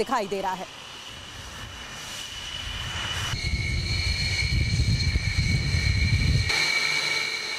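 A jet engine roars loudly nearby.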